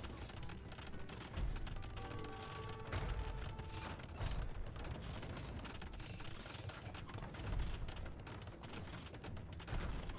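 Swords clash and clang in a battle.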